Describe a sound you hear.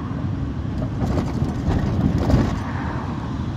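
A passing car whooshes by close alongside.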